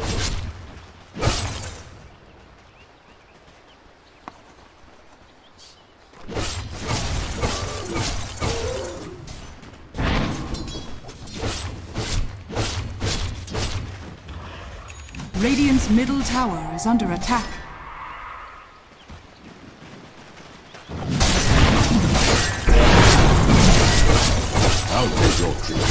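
Weapons clash and magic spells burst in a fast-paced fight.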